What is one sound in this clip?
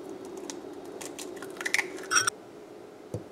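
A whisk clinks and rattles against a glass bowl.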